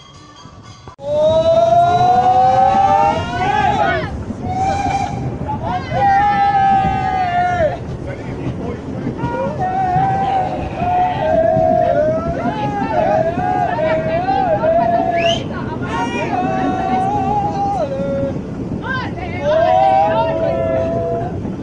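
A steam locomotive chugs and hisses loudly close by.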